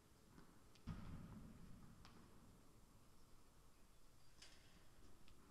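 A tennis racket strikes a ball with a sharp pop in a large echoing hall.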